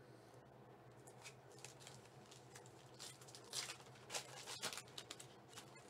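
A plastic wrapper crinkles and rustles as hands tear it open.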